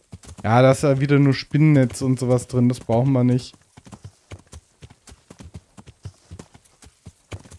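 Horse hooves thud steadily on grass.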